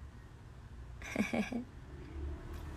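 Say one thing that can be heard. A young woman speaks briefly and quietly close to a phone microphone.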